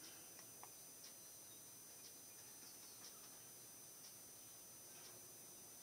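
A computer mouse clicks softly at a steady pace.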